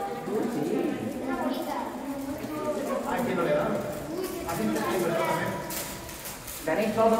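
Children chatter and talk over one another.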